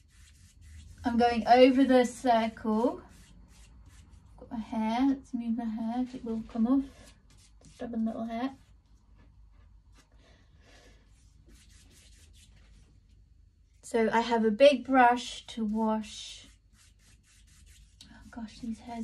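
A woman talks calmly and close by.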